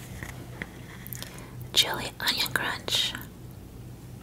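A wooden spoon scrapes and clinks inside a glass jar.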